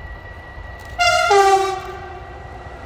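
A train horn blares briefly with a falling two-note call.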